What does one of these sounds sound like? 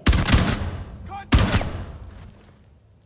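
Two loud rifle shots ring out, each followed by a fading echo.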